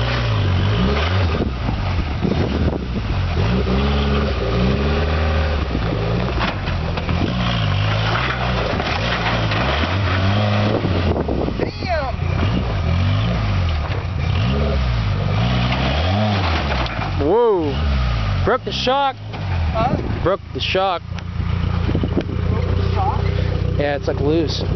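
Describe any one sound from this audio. An off-road vehicle's engine revs up and down as it climbs.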